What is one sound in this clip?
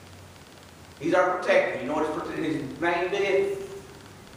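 An elderly man speaks with emphasis through a microphone in an echoing room.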